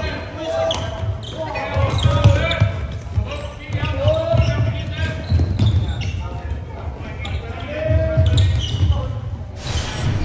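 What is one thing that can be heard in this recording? Sports shoes squeak sharply on a hard floor.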